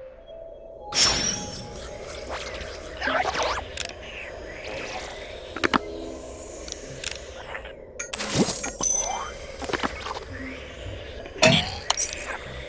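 Menu buttons click softly now and then.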